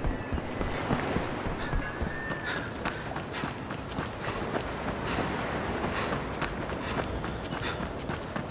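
Footsteps thud steadily on wooden boards and dirt.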